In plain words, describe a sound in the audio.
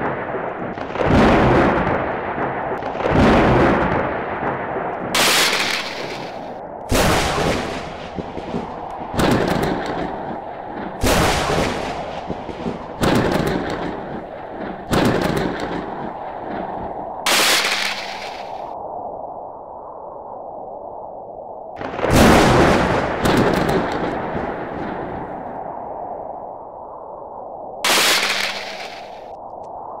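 Thunder cracks and booms again and again, each crash rumbling away.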